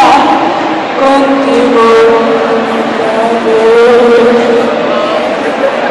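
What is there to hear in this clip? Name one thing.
A young woman speaks with animation through a microphone and loudspeakers.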